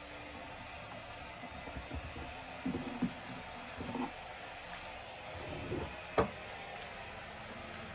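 An electrical cord rustles and taps as it is coiled by hand.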